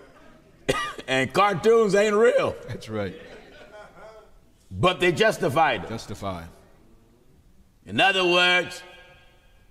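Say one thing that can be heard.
A middle-aged man speaks expressively into a microphone, with pauses.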